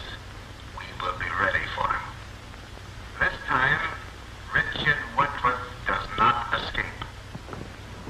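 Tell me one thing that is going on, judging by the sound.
A man speaks with animation, heard through an old, hissing film soundtrack.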